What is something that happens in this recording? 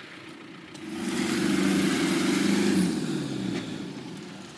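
A diesel four-wheel-drive engine revs under load.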